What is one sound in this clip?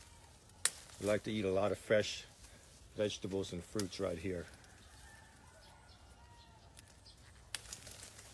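Leaves rustle as a hand moves through a bush.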